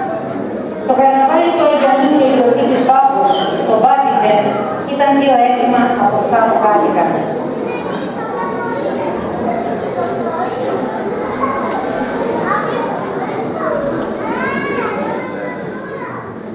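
A woman speaks steadily into a microphone over loudspeakers in an echoing hall.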